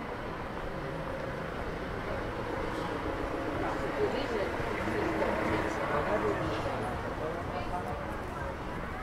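Men and women chat nearby outdoors.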